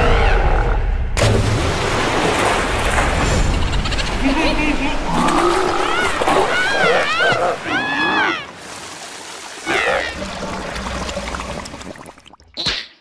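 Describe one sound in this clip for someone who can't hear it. Water splashes and churns loudly.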